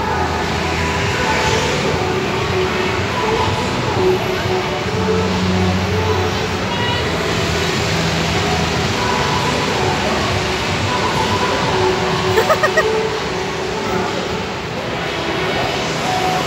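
Many distant voices murmur and echo through a large hall.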